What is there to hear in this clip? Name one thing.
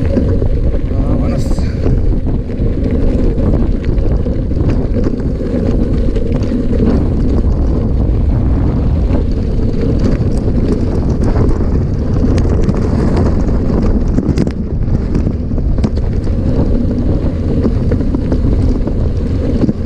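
Wind rumbles loudly across a microphone.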